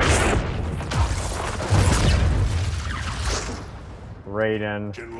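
Lightning crackles and booms loudly.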